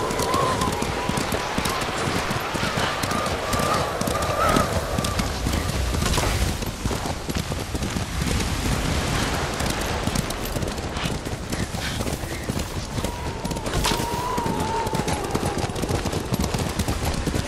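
Wind howls through a snowstorm.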